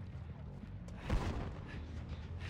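A weapon slashes with a loud hit.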